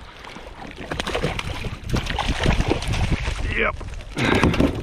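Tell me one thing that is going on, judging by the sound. Water splashes as a fish thrashes at the surface close by.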